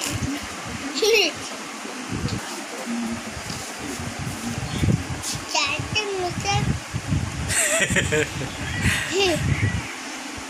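A young boy speaks close by.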